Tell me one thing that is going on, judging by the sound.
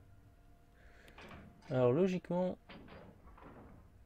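A metal lever clanks as it is pulled down.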